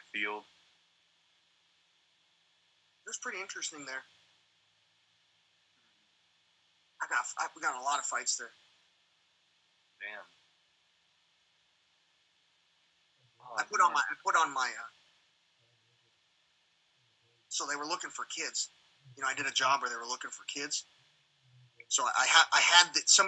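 A young man speaks quietly over an online call.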